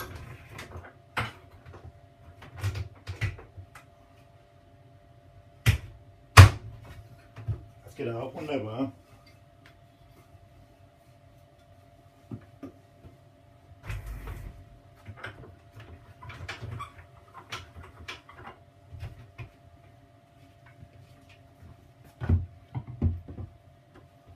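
A wooden board knocks and clatters against a workbench.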